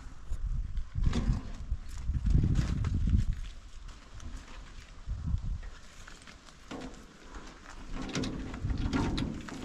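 A wheelbarrow rattles as it is pushed over rough ground.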